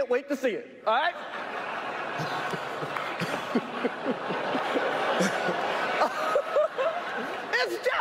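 A large audience laughs and cheers.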